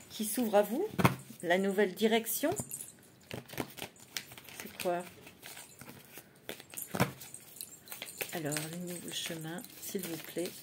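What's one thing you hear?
Cards shuffle and tap in a woman's hands.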